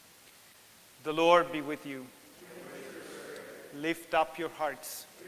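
A man chants in a sung tone, heard through a microphone in an echoing hall.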